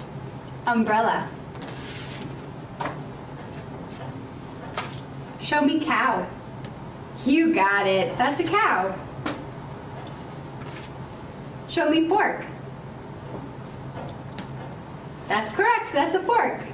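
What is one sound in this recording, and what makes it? A woman speaks calmly in short phrases.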